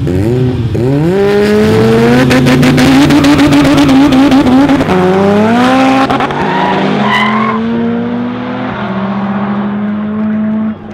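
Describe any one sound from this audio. A car engine roars as the car launches and speeds away, shifting gears and fading into the distance.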